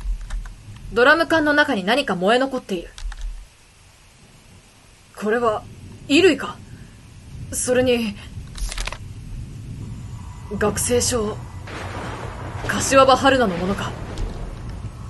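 A young woman talks animatedly into a microphone in short bursts.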